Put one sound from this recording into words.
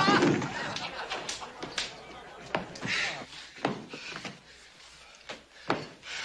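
Boots thump across a wooden floor.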